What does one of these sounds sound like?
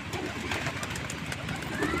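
A pigeon flaps its wings briefly.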